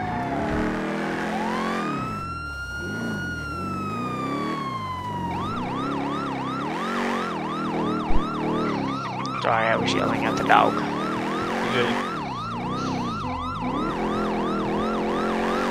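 An engine hums as the ambulance drives.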